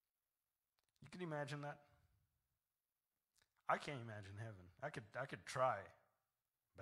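A man speaks with emphasis into a microphone, heard through loudspeakers in a large room.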